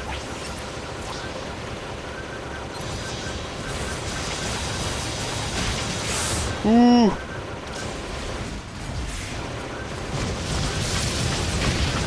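Gunfire and explosions crackle and boom.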